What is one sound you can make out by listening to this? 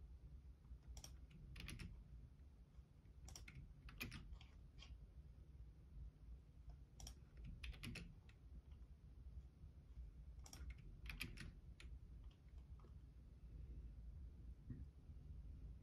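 Fingers tap keys on a keyboard in short bursts of clicks.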